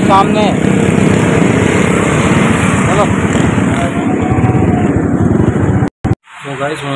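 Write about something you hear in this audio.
Motorbikes and cars rush past on a busy street.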